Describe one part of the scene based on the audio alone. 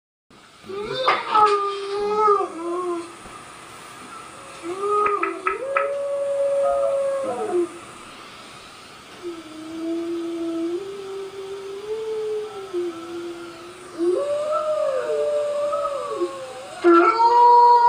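A dog howls through small speakers.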